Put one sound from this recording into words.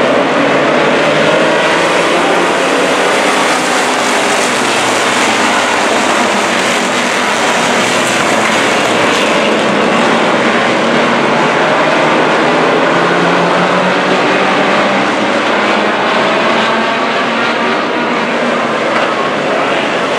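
A pack of race car engines roars loudly around a track.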